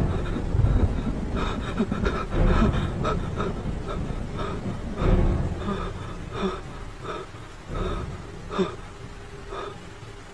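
A man pants heavily and moans close by.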